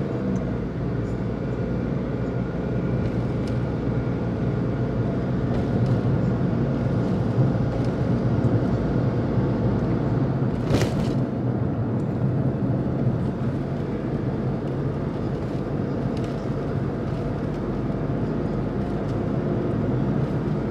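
Tyres roll on the road with a low, steady rumble.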